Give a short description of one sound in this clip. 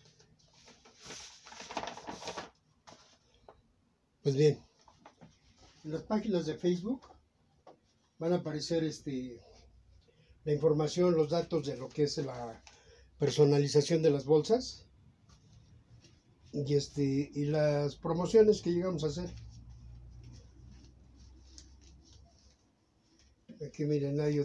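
Paper rustles as it is handled.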